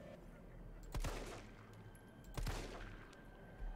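A handgun fires loud shots.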